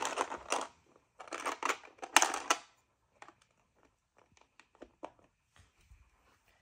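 Small plastic toy bricks rattle and click as they are handled and pressed together close by.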